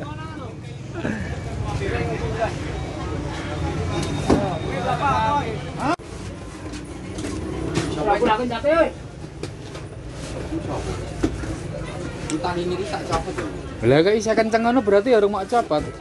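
Men talk nearby, close to the microphone.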